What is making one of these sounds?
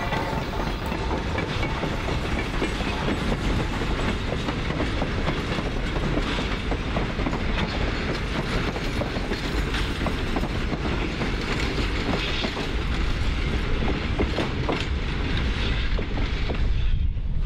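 Train wheels clack and rattle over the rails.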